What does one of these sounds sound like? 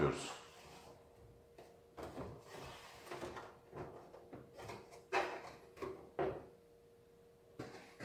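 Hands rub and knock against a plastic panel.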